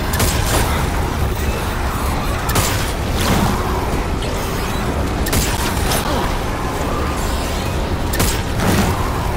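A gun fires loud, sharp shots now and then.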